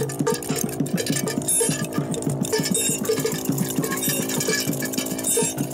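A small handheld synthesizer plays quick, chirping electronic notes in a busy pattern.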